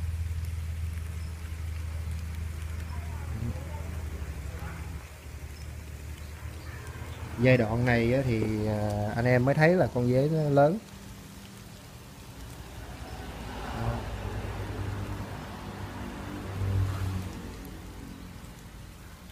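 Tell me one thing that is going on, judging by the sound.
Bees hum softly close by.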